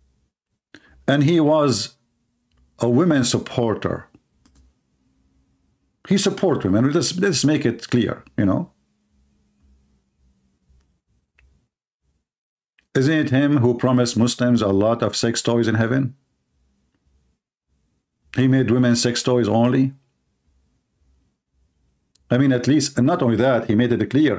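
A man speaks with animation in short bursts, close to a microphone.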